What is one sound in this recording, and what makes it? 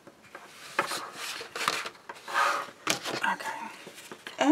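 Stiff paper rustles and slides against a table.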